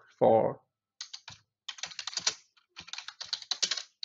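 Computer keys clack quickly as someone types.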